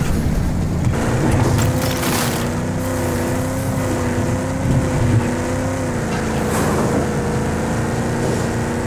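An engine drones steadily.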